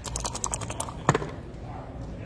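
Dice clatter onto a table.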